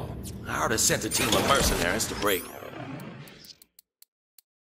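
A game menu opens with a loud electronic whoosh.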